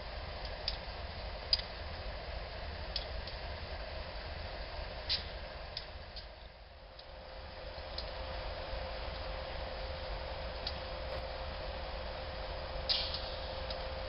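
Train wheels clatter and clank on the rails.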